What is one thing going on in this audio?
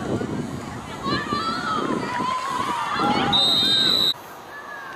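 Young men shout on an outdoor field.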